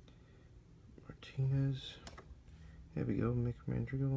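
Trading cards slide and rustle against each other in hands.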